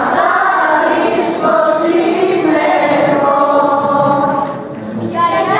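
A group of women sing together on a stage.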